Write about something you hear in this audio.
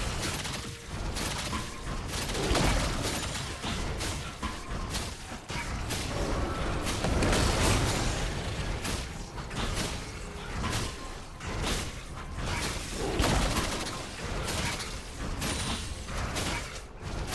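Game characters clash with spell and hit effects.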